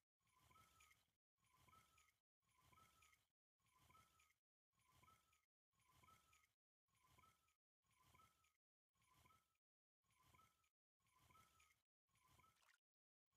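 A fishing reel whirs as it is wound in, in short repeated bursts.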